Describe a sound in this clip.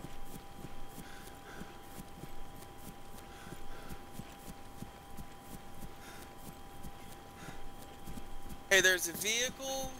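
Footsteps rustle steadily through dry grass.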